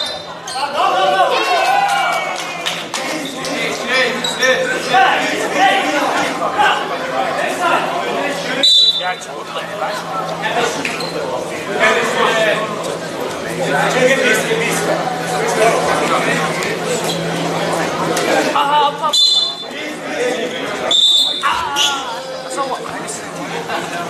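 Young men and boys nearby chatter and call out in a large echoing gym.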